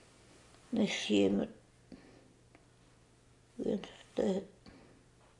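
An elderly woman speaks calmly and close by, in short phrases.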